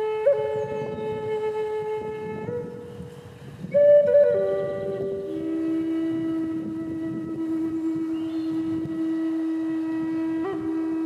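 A wooden flute plays slow, long held notes close by.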